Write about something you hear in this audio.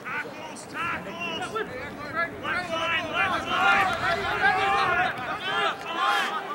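Young men shout loudly to one another outdoors.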